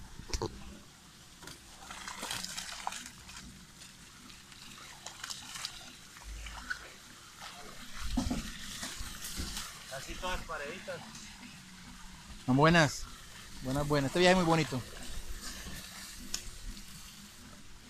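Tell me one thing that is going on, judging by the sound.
Water splashes and sloshes as a net is dragged through shallow water.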